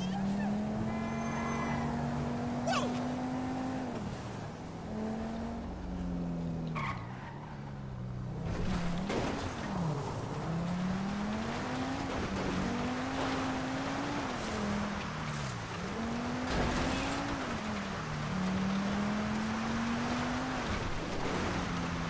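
A car engine revs and shifts up through its gears.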